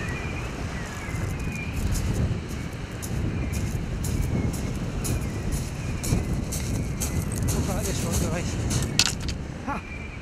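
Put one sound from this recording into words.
Footsteps crunch on shingle.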